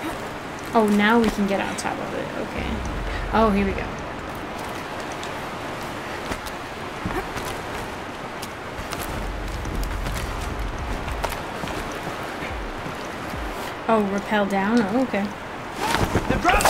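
A waterfall rushes and roars nearby.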